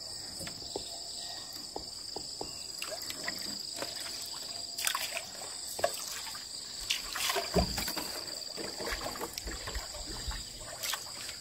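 Water drips and splashes as a fishing net is pulled from a lake into a boat.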